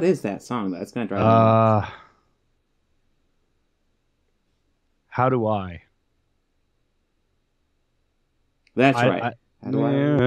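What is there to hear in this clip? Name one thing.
A man speaks casually into a close microphone over an online call, in short bursts with pauses.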